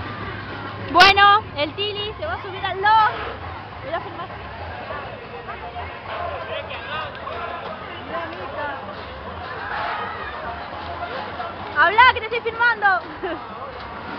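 Riders on a swinging fairground ride scream loudly.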